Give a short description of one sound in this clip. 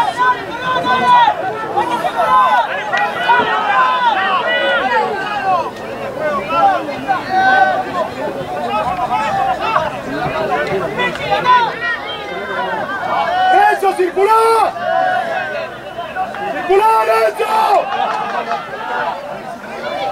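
Many men shout and call out to each other outdoors on an open field.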